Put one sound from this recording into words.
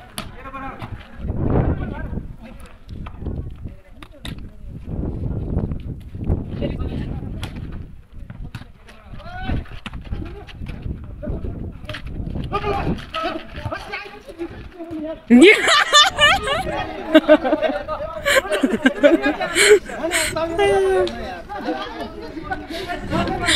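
A crowd of men shouts and yells agitatedly outdoors, growing louder and more frantic.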